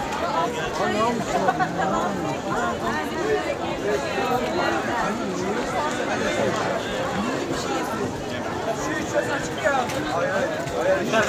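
A crowd of men and women chatters all around, close by, outdoors.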